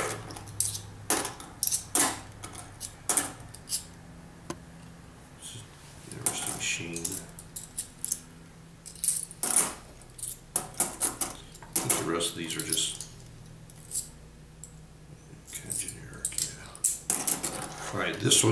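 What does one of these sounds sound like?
Metal coins clink against one another in a hand.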